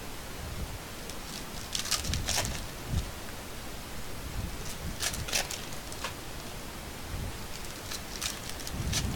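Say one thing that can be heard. Foil card packs crinkle and rustle as they are handled close by.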